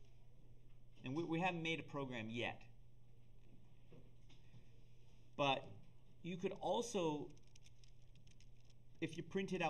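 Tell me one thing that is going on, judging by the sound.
An older man speaks calmly into a nearby microphone, in short phrases with pauses.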